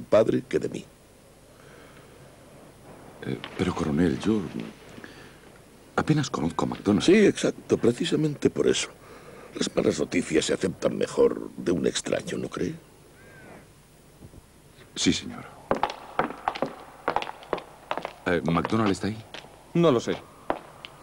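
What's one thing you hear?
A second man answers in a low, tense voice.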